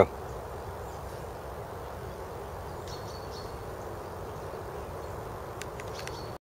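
Leaves rustle softly as a hand brushes through a plant.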